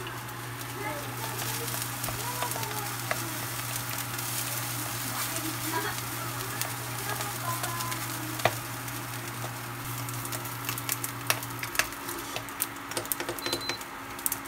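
Food sizzles in a hot frying pan.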